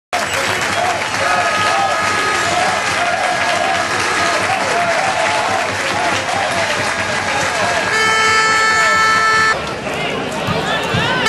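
A stadium crowd cheers and chants loudly outdoors.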